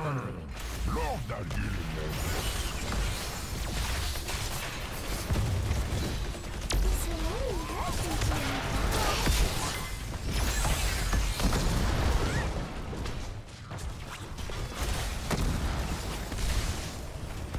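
Heavy explosions boom.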